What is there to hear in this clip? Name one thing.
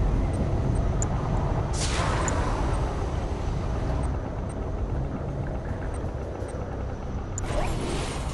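Short electronic clicks sound now and then.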